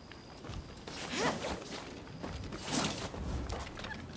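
A grappling rope whooshes through the air.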